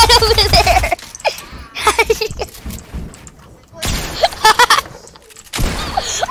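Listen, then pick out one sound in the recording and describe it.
Quick knocks and clicks of building and shooting from a video game come in bursts.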